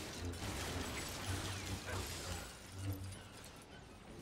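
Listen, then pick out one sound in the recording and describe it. Toy blocks break apart and clatter.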